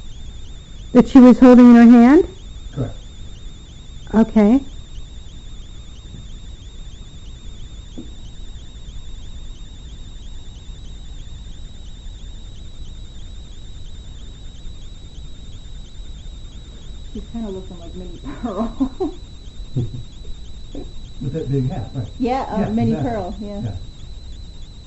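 A woman speaks in short bursts close by, with long pauses.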